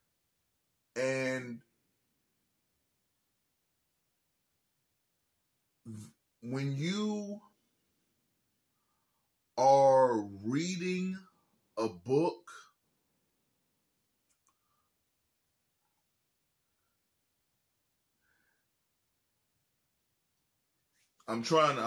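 A man speaks calmly and close by, in short bursts with long pauses.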